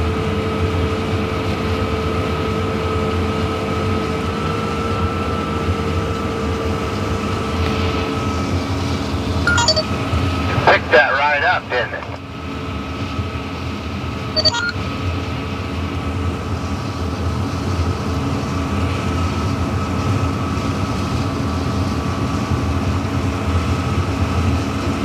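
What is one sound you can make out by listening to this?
Dry corn stalks crackle and snap as a combine harvester cuts through them.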